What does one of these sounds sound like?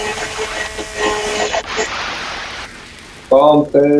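A fire crackles and roars close by.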